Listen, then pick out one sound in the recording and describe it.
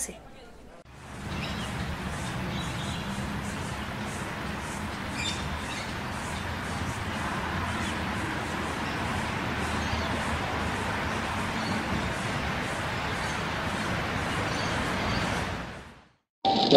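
A busy street hums with distant traffic.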